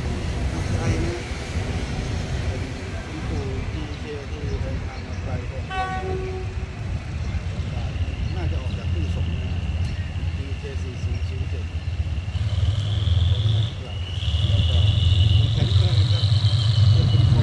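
A diesel locomotive engine rumbles and grows louder as it approaches.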